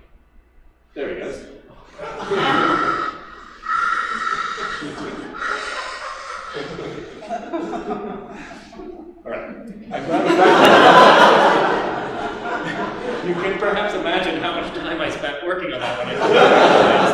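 A man lectures with animation through a microphone.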